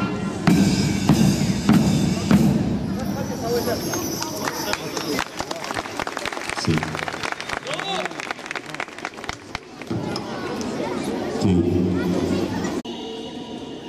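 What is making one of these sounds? A marching band's large drums pound in a rhythm outdoors.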